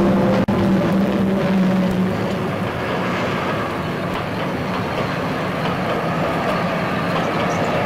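A train rumbles past along the tracks.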